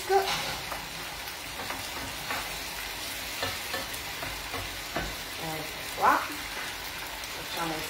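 A spatula scrapes and clinks against a frying pan.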